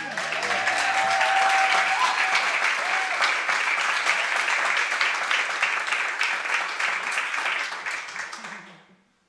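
An audience claps and cheers, then the applause fades out.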